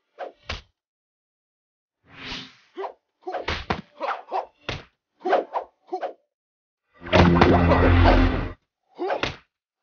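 Swords clash and strike in quick, sharp hits.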